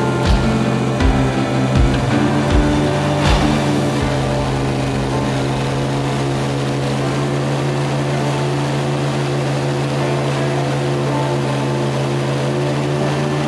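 An airboat's engine and propeller roar steadily.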